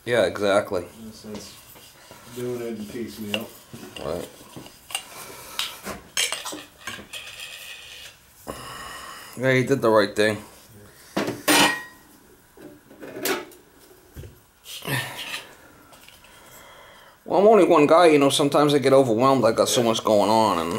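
Metal tools clink and clatter as a hand rummages through a toolbox.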